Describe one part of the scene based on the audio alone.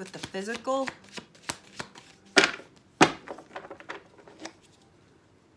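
Playing cards shuffle and click together.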